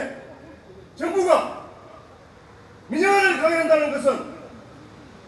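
A man shouts slogans through a loudspeaker outdoors.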